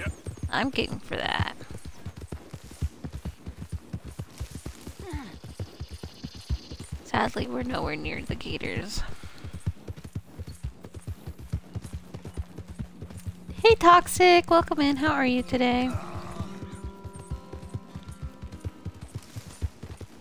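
Hooves pound rapidly on soft ground as a horse gallops.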